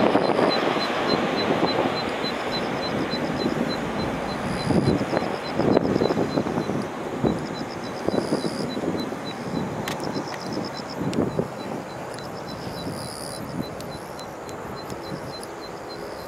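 Wind gusts outdoors and rustles through tall reeds.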